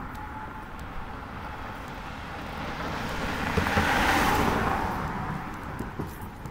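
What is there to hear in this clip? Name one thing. A car approaches and passes by on the road.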